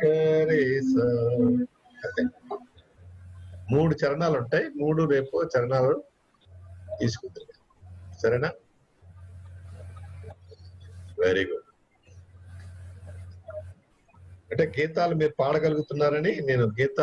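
An older man speaks calmly, in pauses, over an online call.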